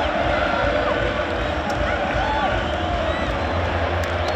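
A large crowd cheers and whistles in an open stadium.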